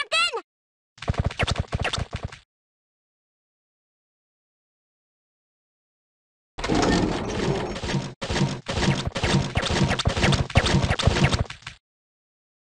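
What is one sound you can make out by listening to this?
Cartoon feet scurry away in a rapid, busy patter.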